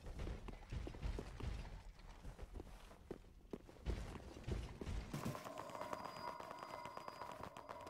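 Armored footsteps clank quickly on stone.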